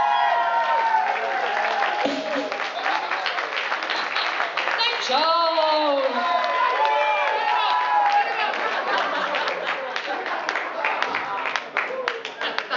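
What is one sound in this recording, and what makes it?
A woman sings into a microphone over loudspeakers.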